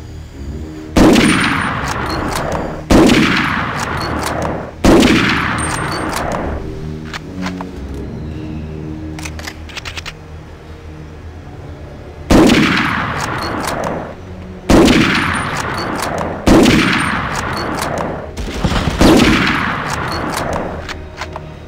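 A rifle fires loud single shots, each one echoing and slowly fading.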